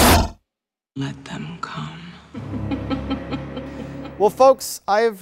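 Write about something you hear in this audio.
A woman speaks softly and slowly.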